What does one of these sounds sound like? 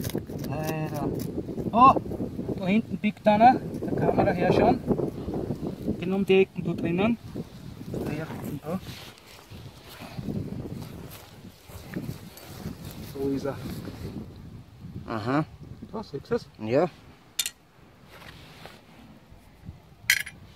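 A knife scrapes and digs into dry soil.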